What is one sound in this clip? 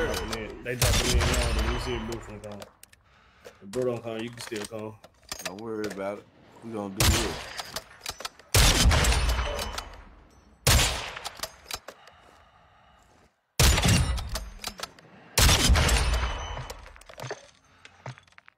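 A sniper rifle fires loud booming shots that echo away.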